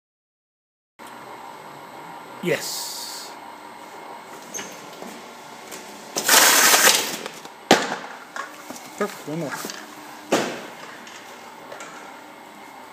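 A case taping machine runs with a mechanical hum and clatter.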